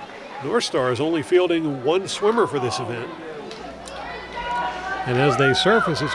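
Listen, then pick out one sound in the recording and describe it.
Swimmers splash steadily through the water.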